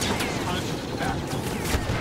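A flamethrower roars in a burst of fire.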